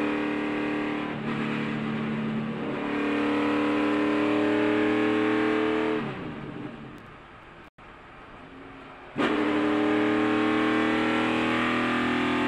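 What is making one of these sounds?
A race car engine roars loudly at high speed.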